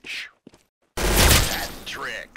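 A submachine gun fires in a video game.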